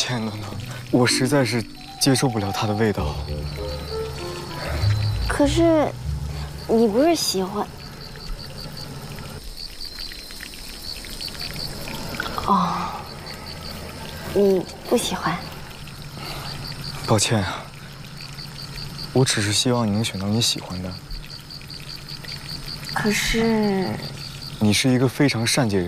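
A young man speaks softly and calmly nearby.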